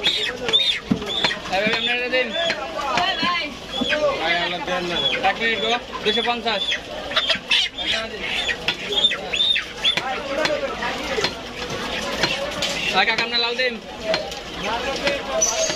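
A cleaver chops meat on a wooden block with dull thuds.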